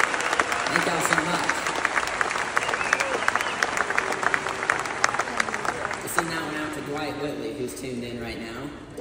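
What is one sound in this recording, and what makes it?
A bluegrass band plays banjo, fiddle, guitar, mandolin and upright bass.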